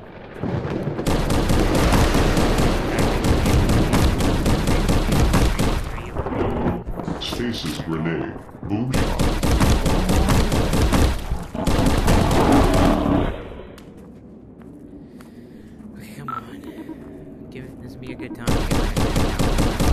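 A laser gun fires rapid bursts of buzzing shots.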